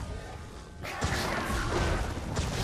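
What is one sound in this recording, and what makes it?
A lightning spell crackles and booms.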